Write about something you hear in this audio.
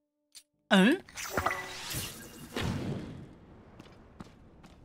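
A burst of fire whooshes and roars, then slowly fades.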